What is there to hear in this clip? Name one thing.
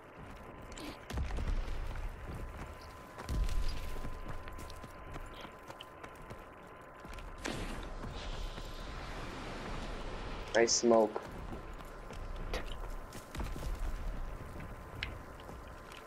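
Footsteps thud on dirt and wooden boards.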